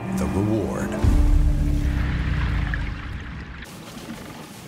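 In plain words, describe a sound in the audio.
Air bubbles rush and gurgle underwater.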